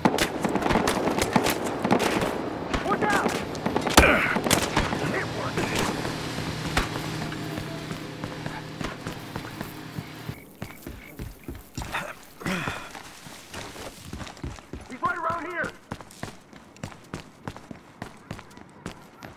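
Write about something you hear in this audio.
Footsteps run quickly over a hard floor.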